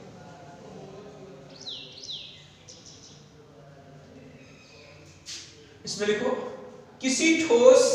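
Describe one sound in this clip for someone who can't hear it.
A man speaks loudly and clearly, lecturing in an echoing room.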